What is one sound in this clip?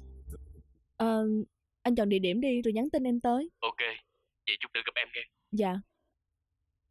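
A woman speaks into a phone, close by.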